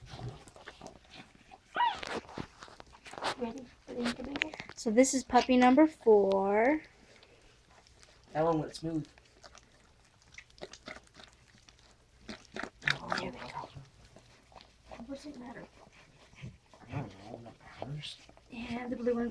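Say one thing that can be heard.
A dog licks a newborn puppy with wet smacking sounds.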